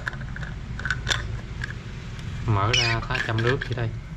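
Small clicks and taps sound as a plastic lid is handled on a metal flask.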